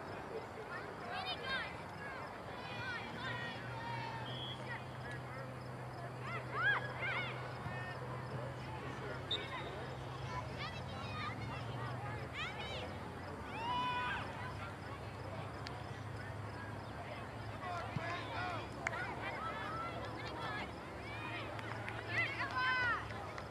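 Adult spectators shout and call out across an open field.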